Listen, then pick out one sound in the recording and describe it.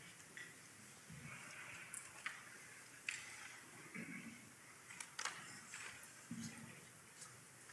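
A choir sings softly in a large, echoing hall.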